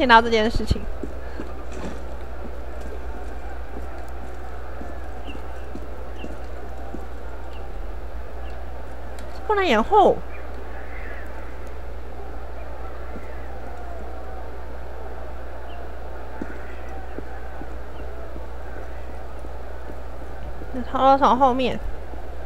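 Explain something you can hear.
Footsteps tread softly across stone.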